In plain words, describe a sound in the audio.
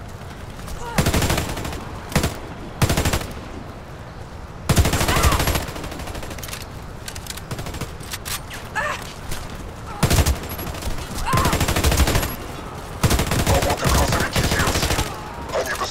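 Rifles fire in rapid bursts and single loud shots.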